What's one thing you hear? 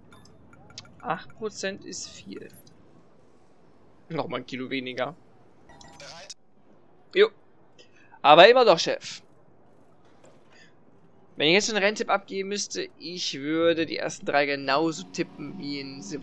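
A man speaks calmly over a radio headset.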